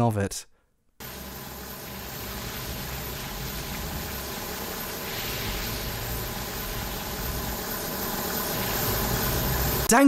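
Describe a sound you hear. Flamethrowers roar steadily.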